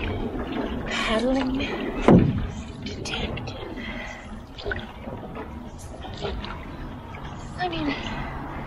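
A paddle splashes and dips into calm water.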